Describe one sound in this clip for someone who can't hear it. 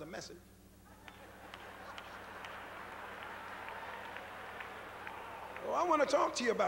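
An audience laughs and murmurs.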